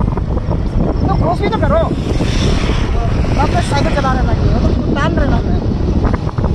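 A young man talks loudly over the wind.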